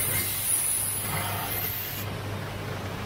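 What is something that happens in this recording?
Glass grinds against a spinning stone wheel.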